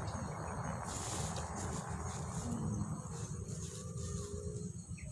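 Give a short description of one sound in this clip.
A plastic bag crinkles under a hand.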